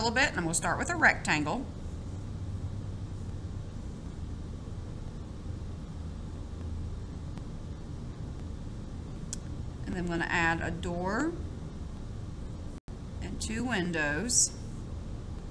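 A felt-tip marker scratches softly across paper.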